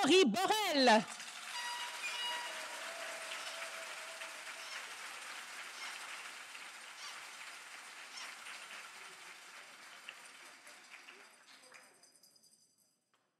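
An audience applauds steadily and then fades out.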